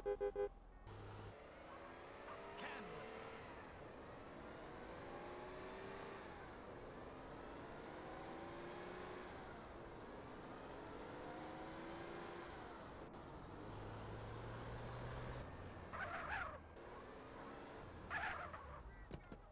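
A car engine revs up repeatedly as it speeds up through the gears.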